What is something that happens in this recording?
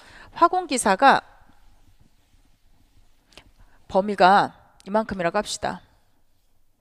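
A woman speaks clearly into a microphone, like a teacher explaining.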